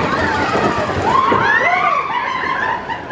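A girl screams with delight close by.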